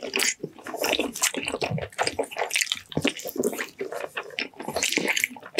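A man chews food loudly and wetly, close to a microphone.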